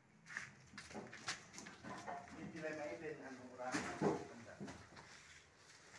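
Plastic sacks rustle as men carry them.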